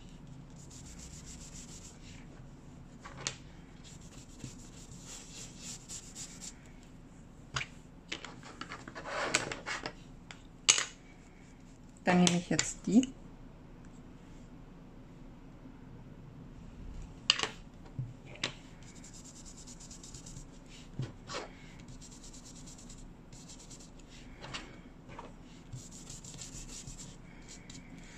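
A foam brush scrubs and swishes softly on paper.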